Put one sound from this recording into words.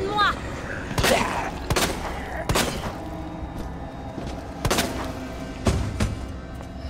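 A pistol fires several loud shots in an echoing room.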